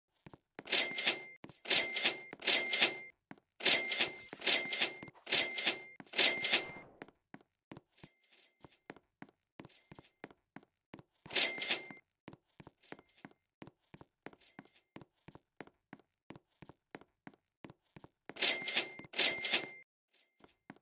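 Quick footsteps tap steadily.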